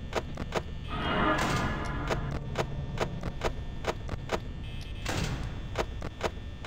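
A monitor flips down with a clattering rush.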